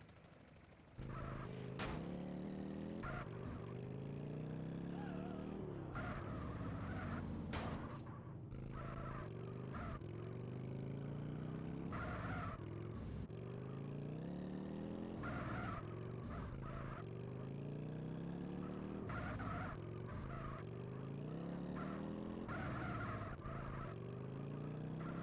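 A motorcycle engine revs up and down repeatedly, echoing in an enclosed space.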